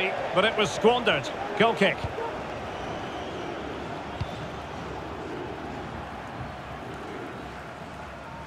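A large stadium crowd murmurs and roars steadily in the distance.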